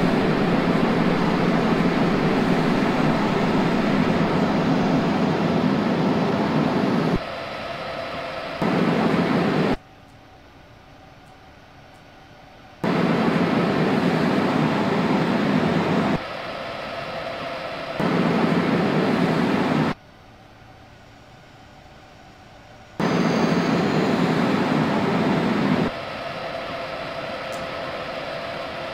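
A train rumbles steadily along the tracks, its loudness jumping up and down.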